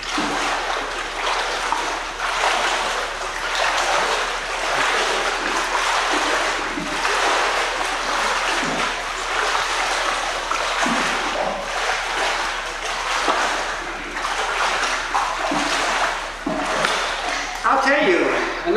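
Water splashes and churns as a child swims and kicks, with an echo.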